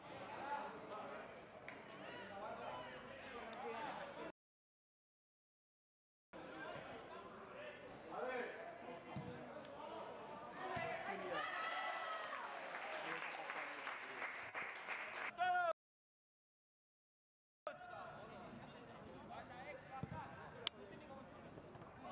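Football players shout to each other across an open pitch.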